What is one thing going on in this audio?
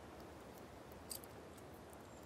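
A soft menu click sounds.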